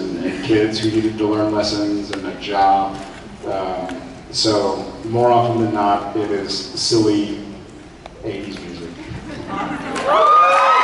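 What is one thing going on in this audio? A young man speaks calmly into a microphone over loudspeakers in a large hall.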